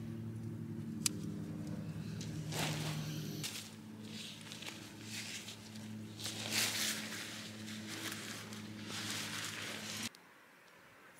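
Tent fabric rustles and crinkles as it is handled.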